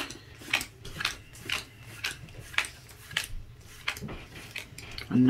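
Trading cards snap softly as they are flicked one by one.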